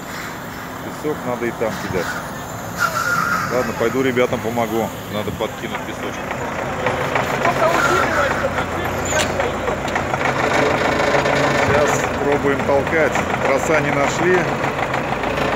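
Men talk nearby in casual voices.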